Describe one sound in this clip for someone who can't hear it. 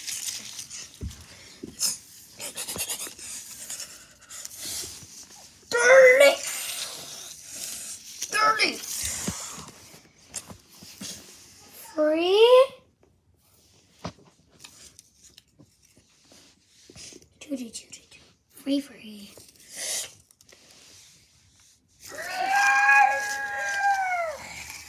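Paper cutouts rustle and tap against a wooden floor.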